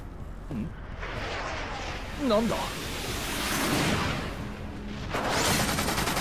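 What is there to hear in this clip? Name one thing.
A large airship roars overhead.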